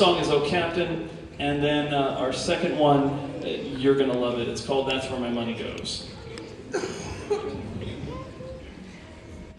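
A man speaks into a microphone over loudspeakers in an echoing hall.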